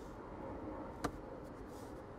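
A small plastic cover snaps shut with a click.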